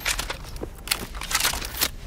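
An elevator call button beeps as it is pressed.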